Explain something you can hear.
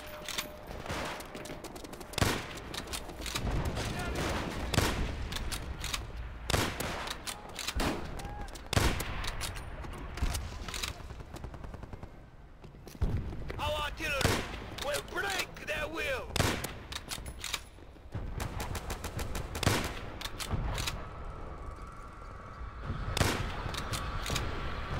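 Gunshots ring out in short bursts, echoing.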